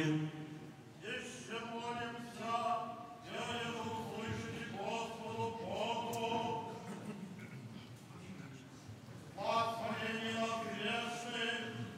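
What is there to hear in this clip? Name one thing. A group of men chant together in low voices, starting and pausing.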